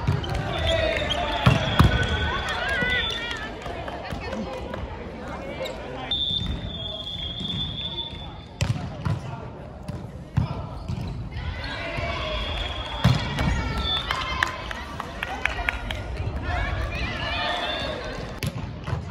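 Players call out and chatter in a large echoing hall.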